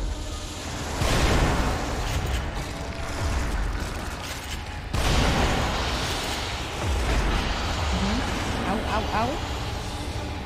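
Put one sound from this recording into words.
Loud shotgun blasts boom with a heavy echo.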